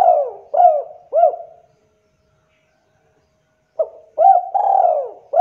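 A spotted dove coos in rhythmic phrases.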